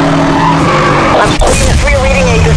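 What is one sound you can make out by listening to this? A car smashes through a road sign with a loud crash.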